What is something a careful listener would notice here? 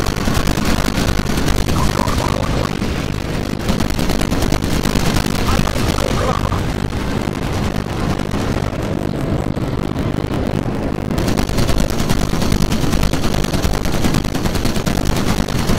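Flak shells burst with loud booms nearby.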